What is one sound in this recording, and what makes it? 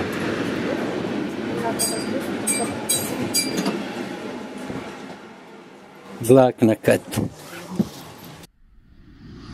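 A train rumbles along steadily.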